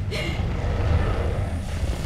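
Heavy debris crashes and rumbles in a large echoing hall.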